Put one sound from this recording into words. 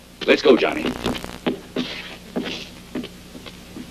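A wooden door bangs open.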